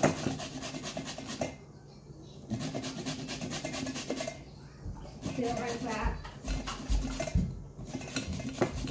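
A zucchini is grated on a metal grater, in quick rasping strokes.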